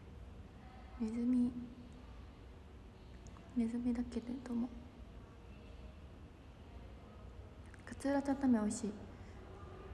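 A young woman speaks softly and calmly in short bursts, close to a microphone.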